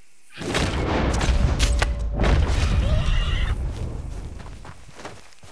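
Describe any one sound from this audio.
A rifle fires once and the blast echoes away.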